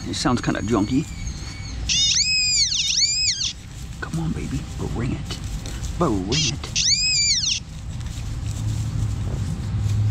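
A knife cuts and scrapes into grassy soil.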